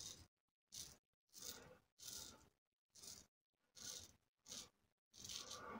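A double-edge safety razor scrapes through lathered stubble in short strokes.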